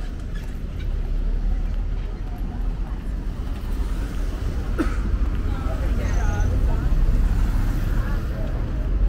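Young women chat and laugh nearby.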